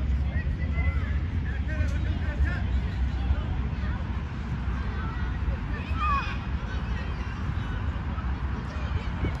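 Young players shout and call out to each other across the field.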